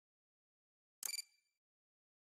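A button clicks once.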